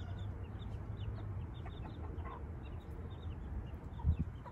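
Small chicks peep in quick, high chirps.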